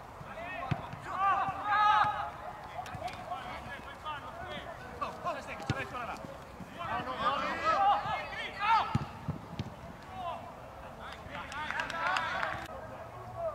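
Men shout to each other across an open outdoor field.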